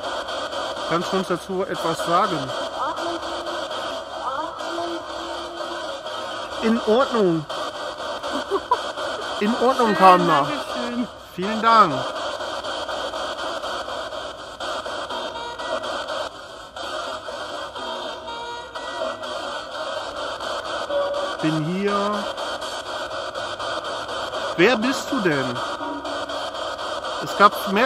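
A portable radio device hisses with scanning static.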